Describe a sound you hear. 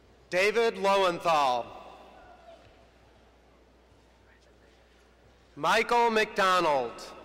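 A man reads out names through a loudspeaker in a large echoing hall.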